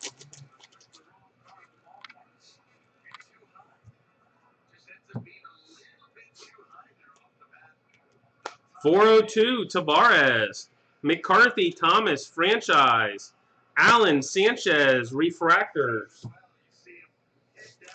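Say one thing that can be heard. Trading cards rustle and flick softly in hands.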